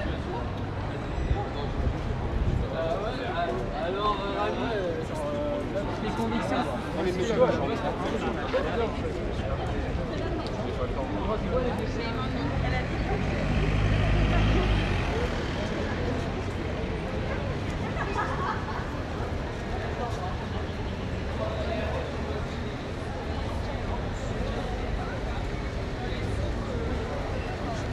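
Many people chatter on a busy street outdoors.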